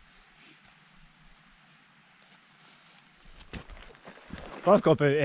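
Boots crunch on stony ground.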